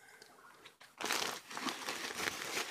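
A woven plastic sack rustles.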